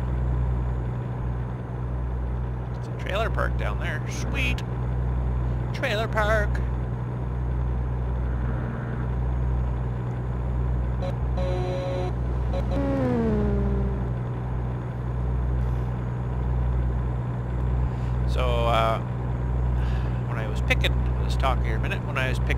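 A truck engine drones steadily at a low pitch.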